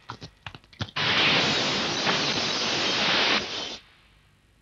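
Glass shatters with a loud, long crash.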